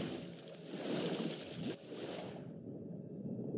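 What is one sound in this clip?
A diver splashes into water.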